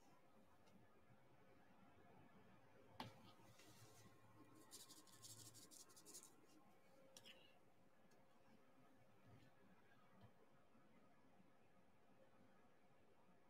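A pen tool taps and clicks softly as small plastic beads are pressed into place.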